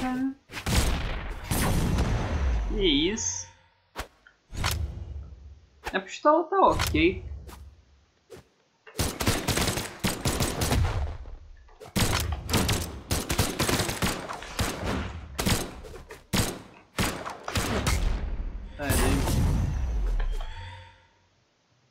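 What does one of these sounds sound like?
Game fighters strike each other with sharp whooshes and thuds.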